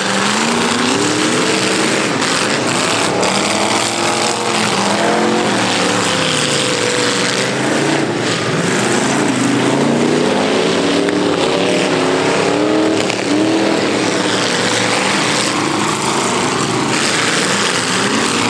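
Car engines rev loudly and roar as cars race on dirt.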